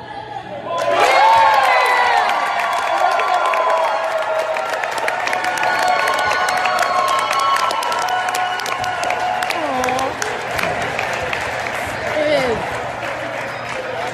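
A crowd of adults and children cheers and shouts loudly in an echoing gym.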